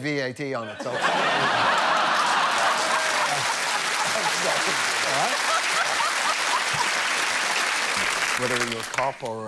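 A large audience claps and cheers.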